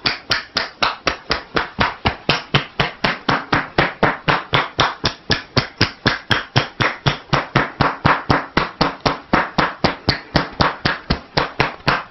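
Hands tap and chop quickly and steadily on a person's back and shoulders.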